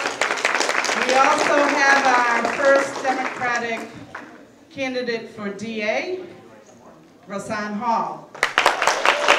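A middle-aged woman sings through a microphone in a large hall.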